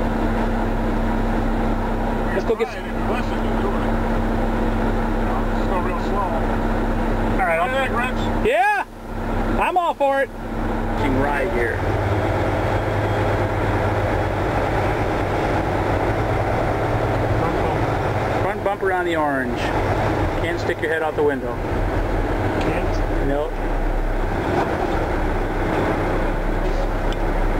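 A truck engine hums steadily throughout.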